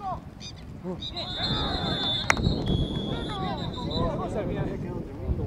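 A referee blows a whistle in long, shrill blasts.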